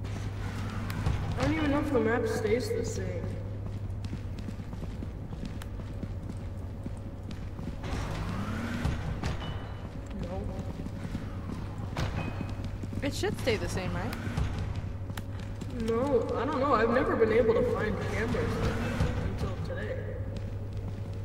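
A young woman talks close to a microphone, calmly and with some animation.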